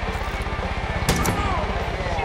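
A rifle is raised to aim with a short metallic click.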